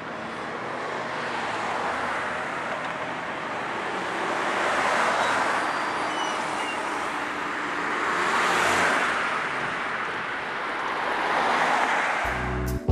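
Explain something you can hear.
Cars pass by on a street, their tyres rushing over the road and swelling and fading.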